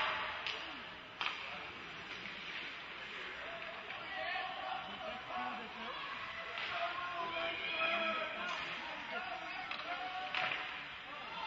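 Hockey sticks click against a puck now and then.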